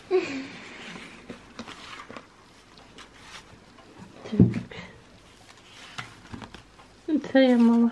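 Paper photographs rustle softly as hands sort through them.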